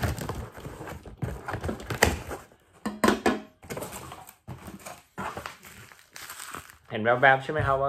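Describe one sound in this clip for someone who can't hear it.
A cardboard box rustles and scrapes as it is opened.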